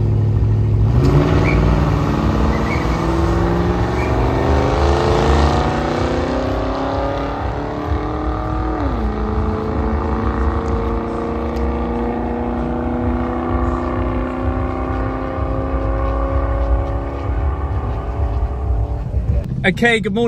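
Race car engines roar off the line and climb in pitch as the cars speed away into the distance.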